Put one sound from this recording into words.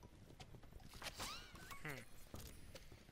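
A wrapped present bursts open with a bright, sparkling chime.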